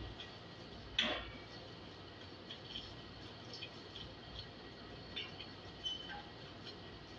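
Metal chairs knock and scrape on a tiled floor.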